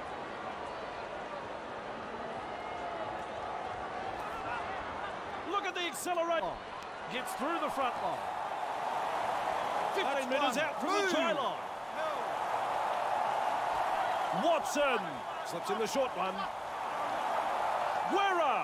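A large crowd cheers and murmurs steadily in a stadium.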